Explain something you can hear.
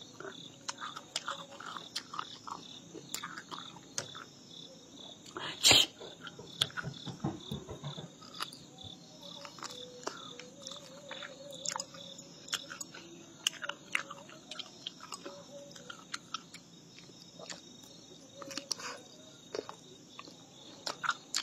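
A woman chews and slurps food close by.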